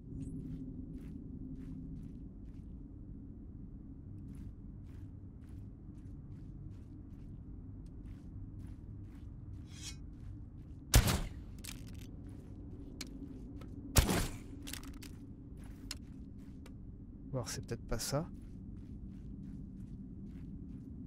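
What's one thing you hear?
Footsteps crunch steadily on a hard surface.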